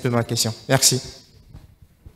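A young man speaks through a microphone.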